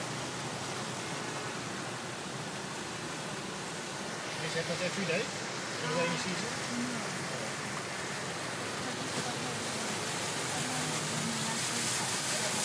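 Muddy floodwater rushes and roars steadily.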